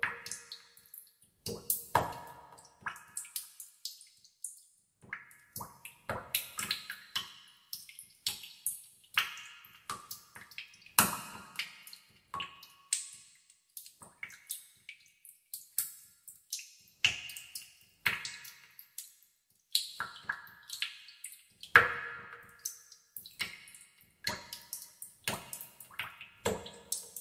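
Water drops fall and plink into still water, one after another.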